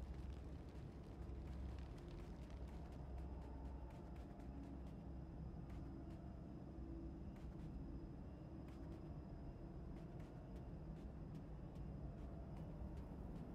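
Footsteps patter quickly on soft sand.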